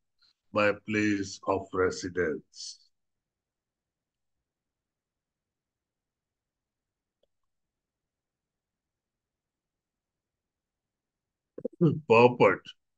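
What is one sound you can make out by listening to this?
A man speaks calmly through a microphone on an online call, pausing between phrases.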